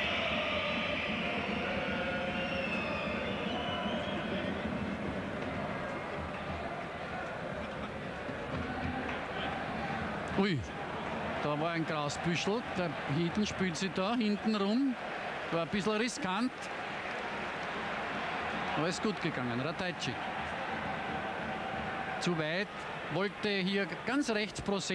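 A large crowd murmurs and chants in a stadium.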